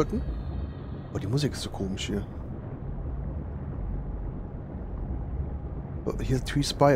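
A low underwater rumble drones steadily.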